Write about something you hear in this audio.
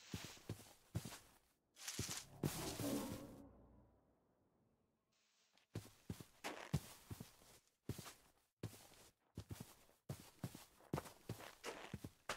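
Footsteps thud and rustle through grass at a steady walking pace.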